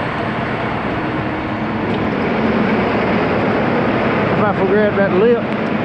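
A truck engine idles nearby with a steady low rumble.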